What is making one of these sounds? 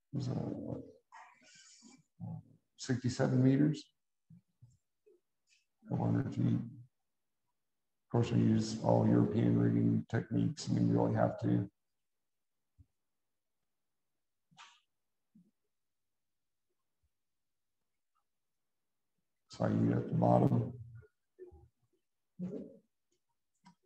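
A man talks calmly through an online call, with long pauses.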